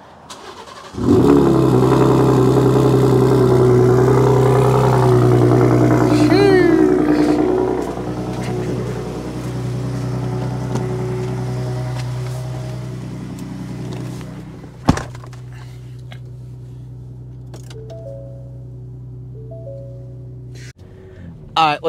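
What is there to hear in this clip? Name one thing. A truck engine idles with a deep, loud rumble.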